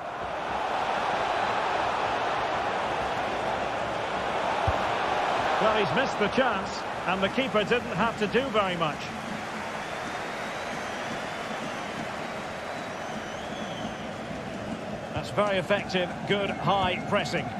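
A large crowd cheers and chants in a stadium.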